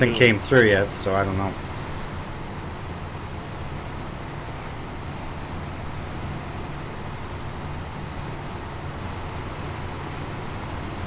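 A truck engine rumbles steadily as the truck drives over rough ground.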